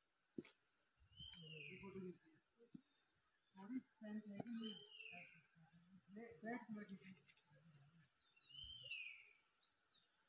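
An older man talks nearby.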